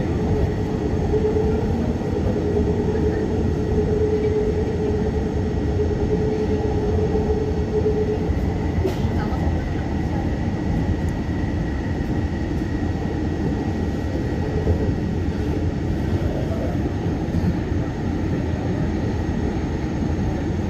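A train rumbles steadily along its track, its motor humming.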